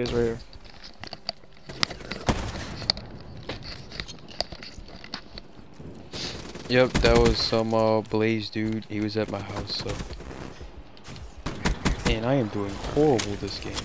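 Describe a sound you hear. Gunfire crackles in short rapid bursts.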